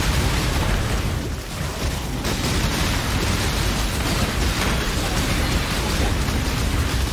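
Game spells crackle and explode in dense, constant bursts.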